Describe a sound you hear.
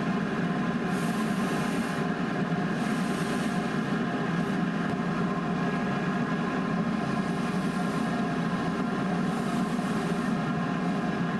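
A steam iron hisses in short bursts.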